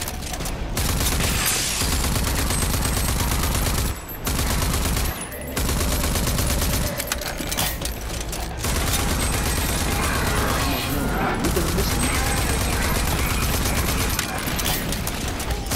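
Rapid gunfire rattles in fast bursts.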